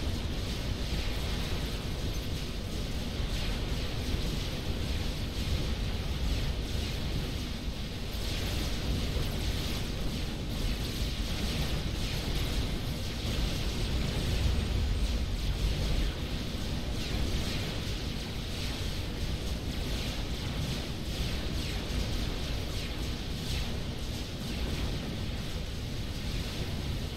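Explosions rumble low and steady.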